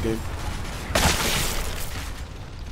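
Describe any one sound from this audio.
A shotgun blasts loudly at close range.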